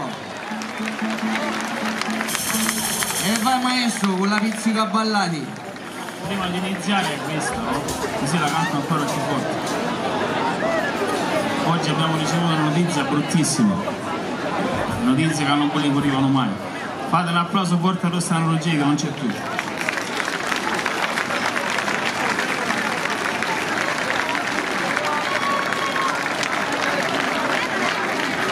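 A folk band plays lively music outdoors.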